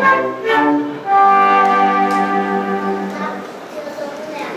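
A small string and flute group plays a tune and ends on a held chord.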